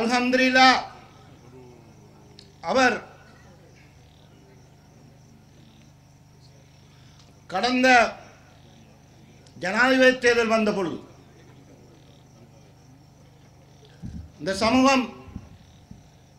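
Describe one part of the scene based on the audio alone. A man speaks loudly and with emphasis into a microphone, heard through loudspeakers, in short bursts with long pauses.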